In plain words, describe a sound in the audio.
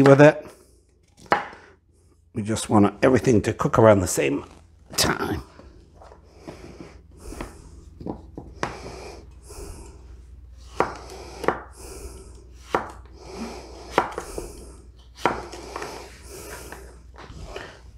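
A knife chops on a wooden board with sharp knocks.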